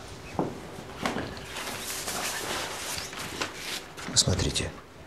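Clothes rustle as a man moves quickly.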